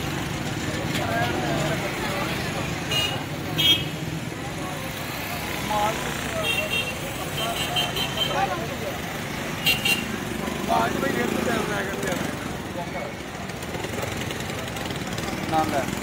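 Busy street traffic rumbles and hums outdoors.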